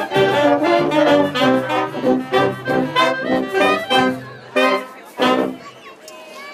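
A brass band plays a lively tune outdoors.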